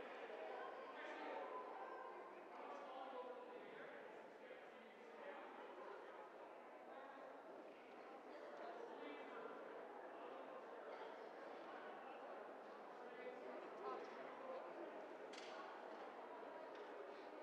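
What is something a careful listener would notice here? A crowd of adults chatters and murmurs in a large echoing hall.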